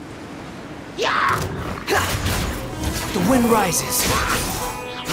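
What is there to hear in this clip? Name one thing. Blades slash and strike with sharp impacts.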